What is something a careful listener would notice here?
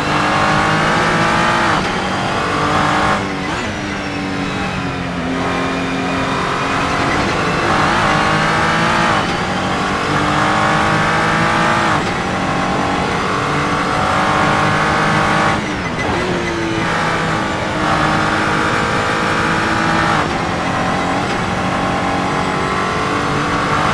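A racing car engine roars, climbing in pitch and dropping sharply at each gear change.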